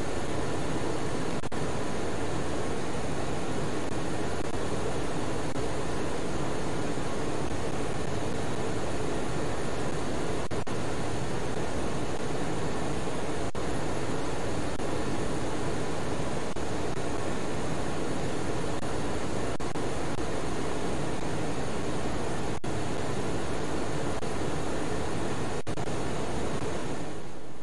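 A steady jet engine roar fills an aircraft cockpit.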